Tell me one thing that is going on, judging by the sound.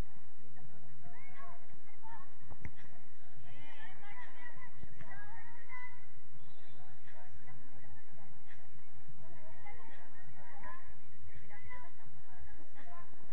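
Young girls shout and call to each other across an open field.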